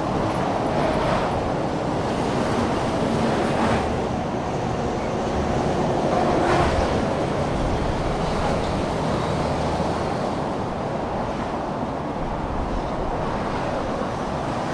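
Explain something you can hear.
Other cars pass close by with a rushing whoosh.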